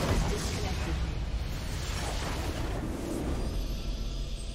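Game battle effects clash and burst loudly.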